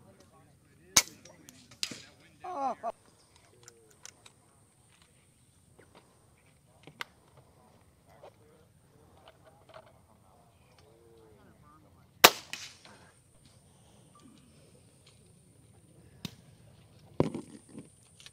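An air rifle fires with sharp cracks, a few times.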